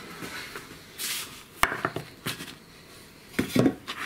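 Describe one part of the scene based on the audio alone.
A bread loaf thumps down onto a wooden board.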